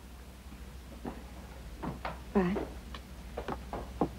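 A young woman answers calmly nearby.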